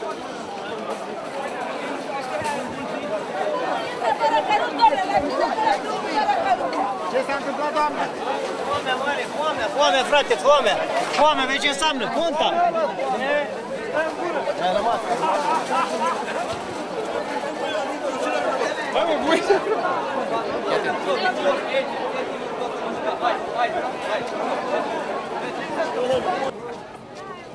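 A large crowd chatters and shouts loudly outdoors.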